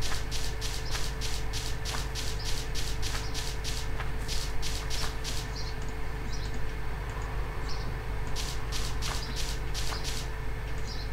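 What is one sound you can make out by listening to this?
Rapid crunching scrapes of digging dirt repeat quickly.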